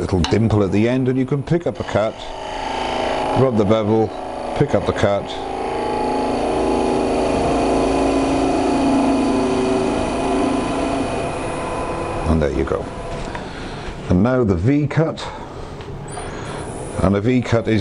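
A wood lathe whirs steadily.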